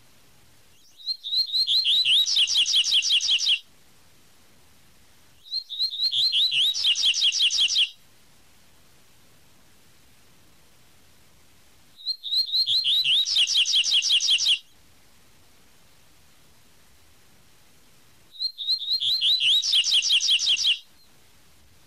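A small songbird sings a rapid run of high, sweet chirping notes, again and again with pauses between.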